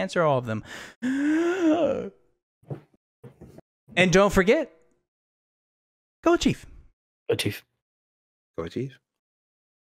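A young man speaks animatedly into a close microphone, in bursts with pauses.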